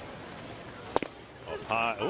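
A baseball smacks into a leather catcher's mitt.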